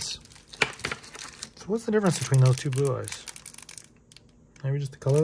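Plastic crinkles and clicks in someone's fingers.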